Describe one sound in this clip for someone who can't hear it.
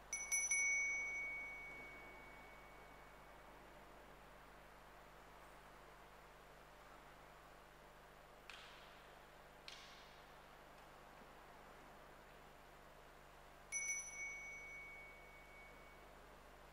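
A small bell rings brightly in a large echoing hall.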